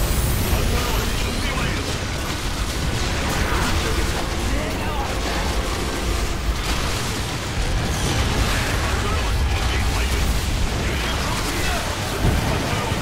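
Explosions boom and crackle in a game battle.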